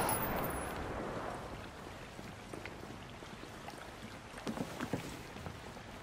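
Footsteps thud on wooden boards.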